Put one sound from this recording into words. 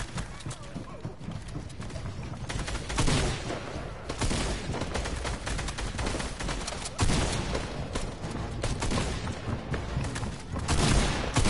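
A pickaxe swings with whooshing thuds.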